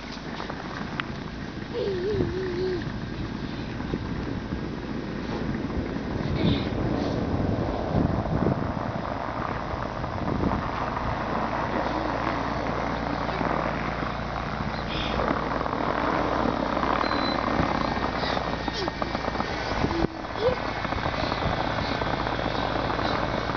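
A car engine idles and revs.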